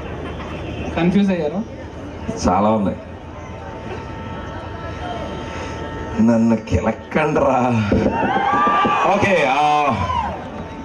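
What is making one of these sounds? A young man speaks with animation through a microphone and loudspeakers outdoors.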